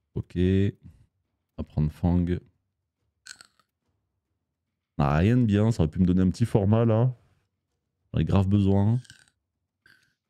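A man talks with animation close to a microphone, in short bursts.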